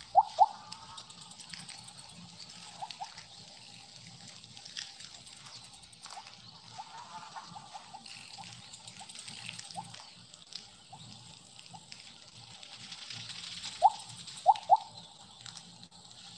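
Short bright blips sound as a game snake eats glowing pellets.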